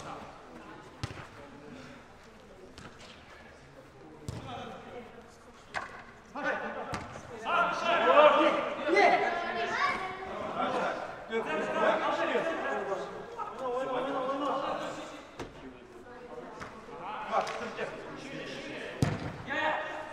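A ball is kicked with dull thumps in a large echoing hall.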